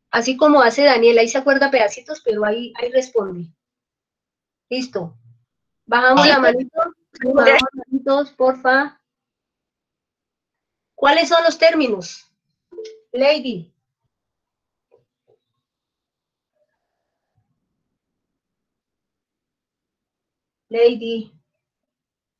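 A woman speaks calmly, as if teaching, through an online call.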